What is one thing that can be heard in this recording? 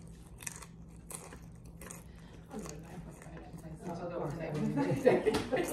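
A young man chews crunchy food close by.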